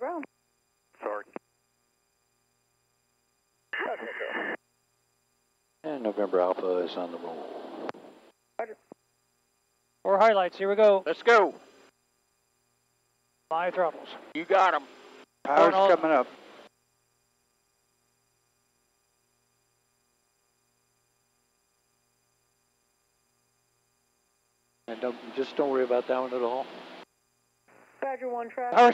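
Elderly men talk over a headset radio in short bursts.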